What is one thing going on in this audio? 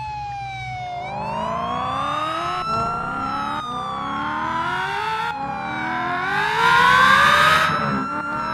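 A car engine revs up as it speeds away.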